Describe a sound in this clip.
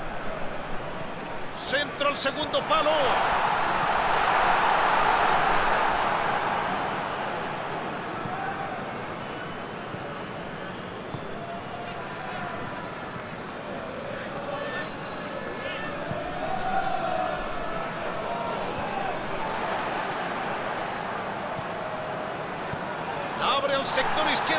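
A stadium crowd roars and cheers steadily.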